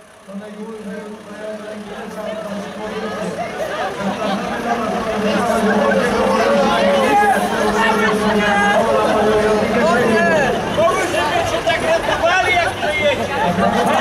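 A crowd of men, women and children chatters and calls out outdoors.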